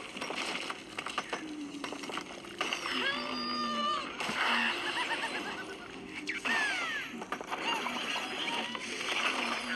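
Video game music plays through a small speaker.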